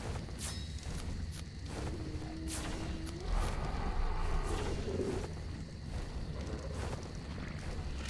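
Soft clicks sound as items are moved in a game menu.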